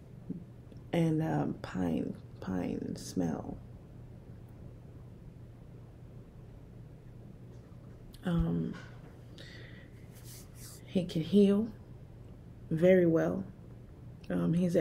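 A middle-aged woman speaks calmly and close to a microphone, in short bursts with pauses.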